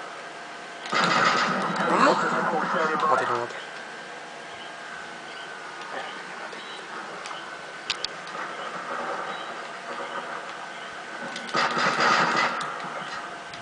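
Gunfire from a video game rattles through a television speaker.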